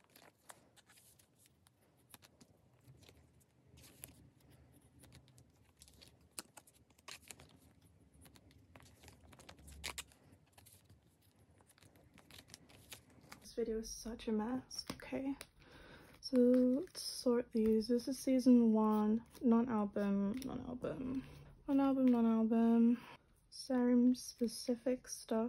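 Plastic sleeves crinkle and rustle as cards are handled.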